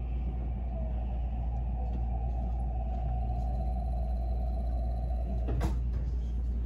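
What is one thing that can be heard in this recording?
A train's motor whines steadily, then stops.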